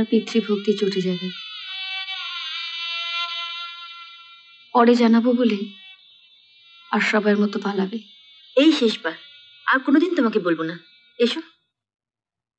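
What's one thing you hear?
A woman speaks emotionally, close by.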